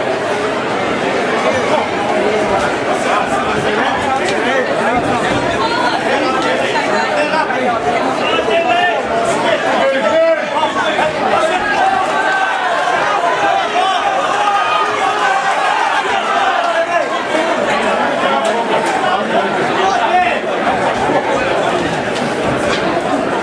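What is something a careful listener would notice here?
A crowd chatters and shouts loudly in an echoing hall.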